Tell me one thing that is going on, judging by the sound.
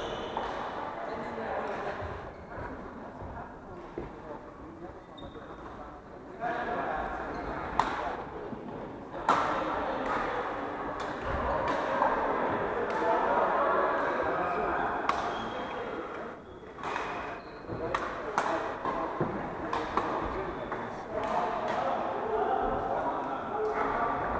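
Several young men talk and call out across the hall.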